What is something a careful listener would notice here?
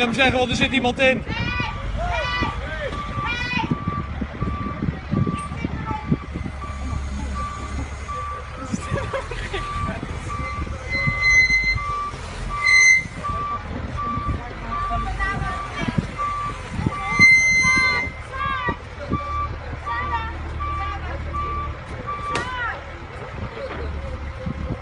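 A loader's engine rumbles nearby.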